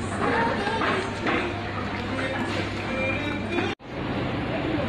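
Men and women chatter in a busy, echoing room.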